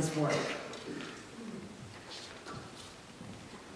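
An older woman speaks calmly into a microphone in an echoing room.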